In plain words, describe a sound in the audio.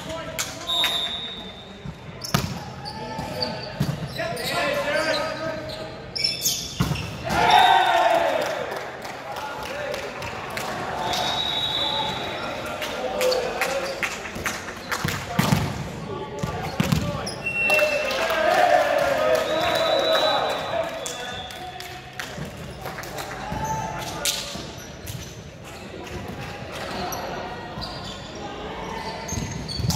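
A volleyball is struck with sharp slaps, echoing in a large hall.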